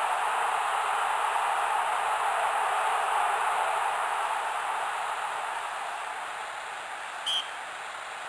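A large crowd roars loudly, then slowly fades.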